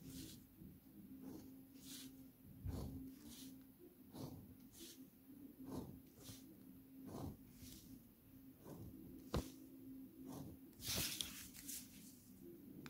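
A plastic ruler slides and taps on paper.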